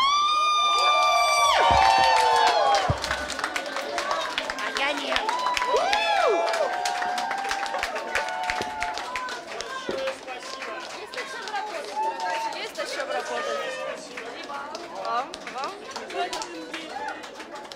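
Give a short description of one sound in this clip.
Several people clap their hands.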